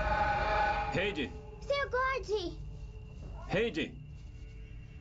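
A young girl calls out.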